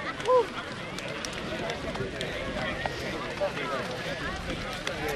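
A crowd of young men chatters outdoors.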